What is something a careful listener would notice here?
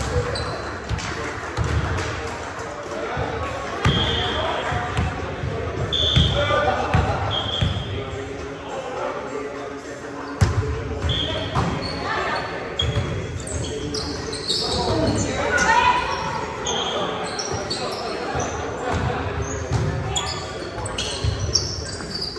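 Badminton rackets hit a shuttlecock with light pops.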